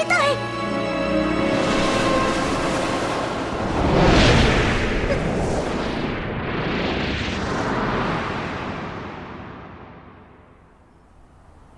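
A rushing whoosh swells loudly and slowly fades away.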